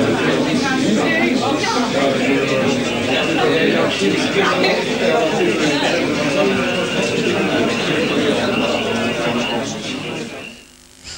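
A crowd of men and women chatter in a room.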